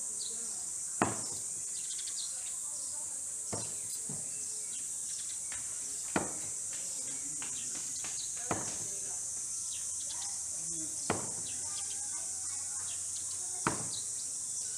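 Thrown blades strike a wooden target with sharp thuds, one every few seconds.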